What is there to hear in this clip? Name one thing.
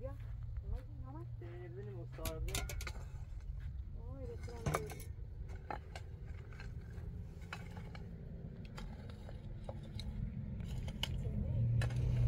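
A hoe scrapes and scratches over dry ground.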